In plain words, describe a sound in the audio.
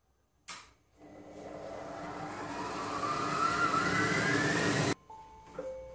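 A kitchen machine's motor whirs, rising steadily in pitch, then stops.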